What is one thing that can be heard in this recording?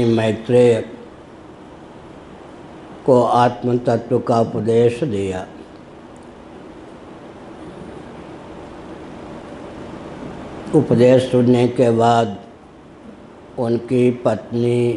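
An elderly man speaks calmly through a microphone, in bursts with pauses.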